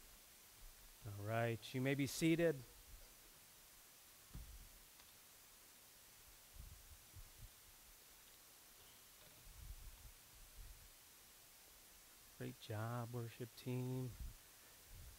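A man speaks briefly through a loudspeaker in a large hall.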